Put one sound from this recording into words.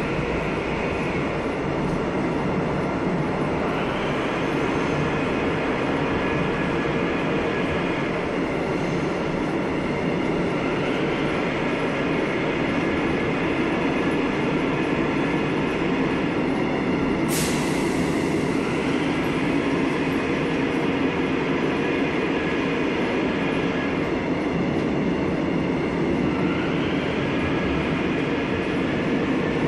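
A subway train rumbles and whines as it runs along the track.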